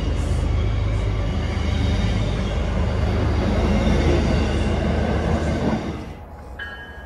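A train's engine idles with a low, steady rumble.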